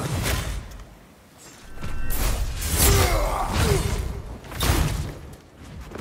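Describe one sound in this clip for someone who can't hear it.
Sword blows land with sharp, heavy hits.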